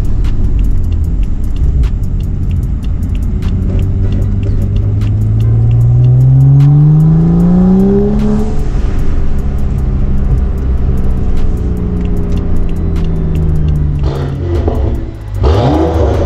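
A car engine hums and climbs in pitch as the car speeds up.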